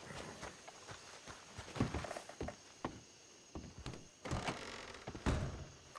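Boots thud on wooden boards.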